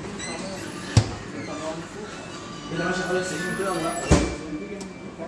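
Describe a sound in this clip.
Plastic and glass shelves clink and rattle inside a refrigerator.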